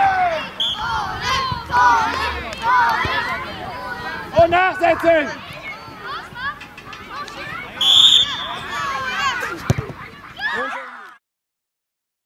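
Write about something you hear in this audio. Adults in a crowd of onlookers talk and cheer.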